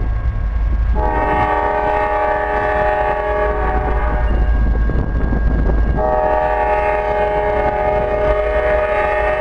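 A train horn blares in two long blasts from a distance.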